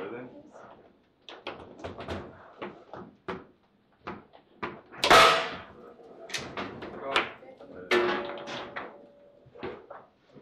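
Metal rods clatter as they slide and spin in the table.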